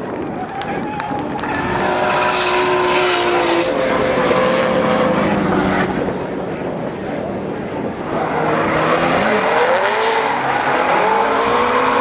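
Tyres screech on pavement.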